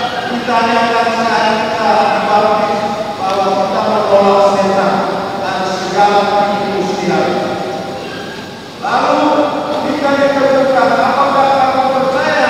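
A large congregation of young voices sings together in a reverberant hall.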